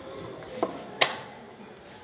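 A chess clock button is pressed.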